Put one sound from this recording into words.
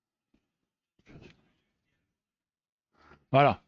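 A middle-aged man speaks briefly into a headset microphone.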